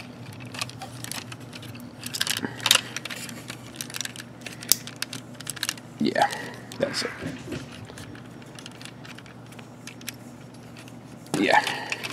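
Plastic parts of a toy click and rattle as hands handle them.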